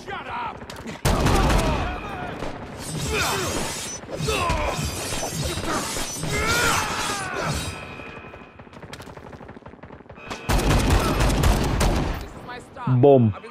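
A heavy blade whooshes and slashes with loud impacts.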